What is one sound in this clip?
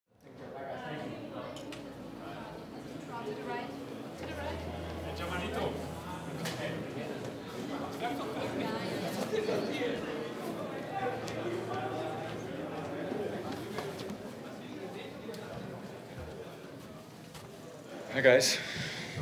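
A crowd of people murmurs and chatters in the background.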